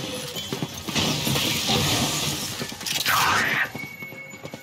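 A magical orb crackles and whooshes.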